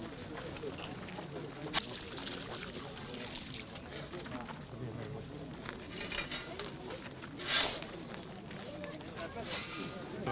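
A crowd of men murmurs quietly outdoors.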